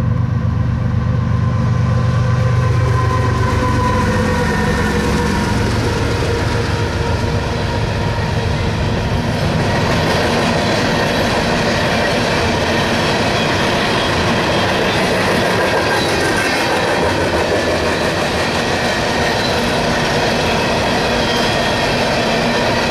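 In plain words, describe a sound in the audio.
Freight car wheels roll on steel rails.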